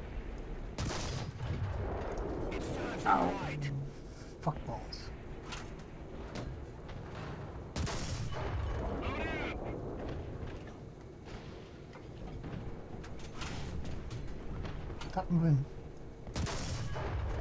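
A tank cannon fires with a loud boom, several times.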